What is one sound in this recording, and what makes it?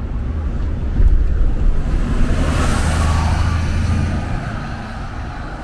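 A bus roars past close by and pulls away.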